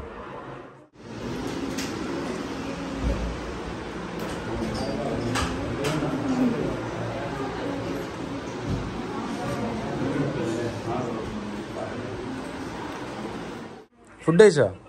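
Many people chatter quietly in the background.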